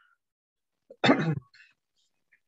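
A man coughs close by.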